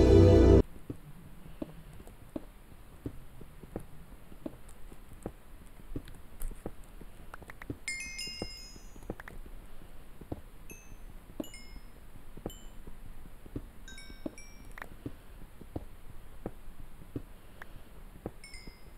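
Stone blocks break with a crunch.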